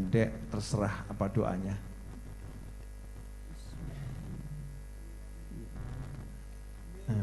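A group of men chants together.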